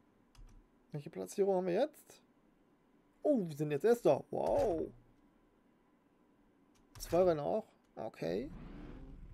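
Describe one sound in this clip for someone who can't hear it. A young man talks with animation close to a microphone, in short bursts.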